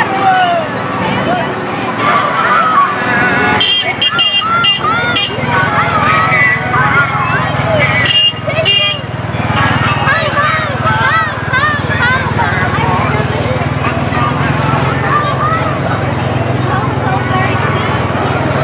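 A crowd of men, women and children chatters and calls out along the street outdoors.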